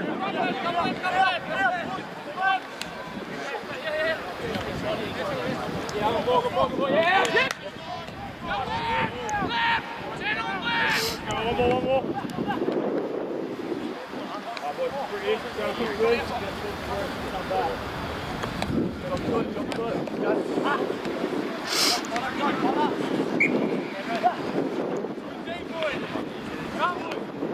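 Young men shout and call to each other outdoors on an open field.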